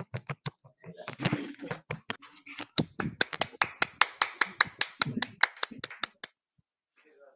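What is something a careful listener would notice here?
Young people clap their hands in quick bursts.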